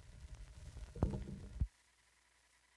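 A tonearm lifts off a record with a sharp thump.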